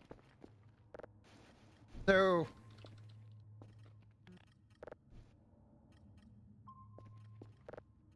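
Cardboard boxes thud and knock as they fall and land.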